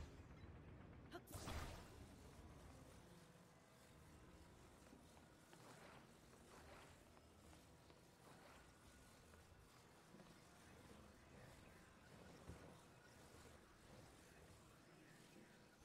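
A soft magical hum drones steadily.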